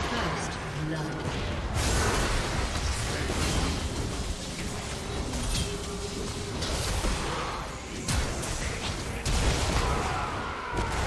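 Magical blasts crackle and boom in quick bursts.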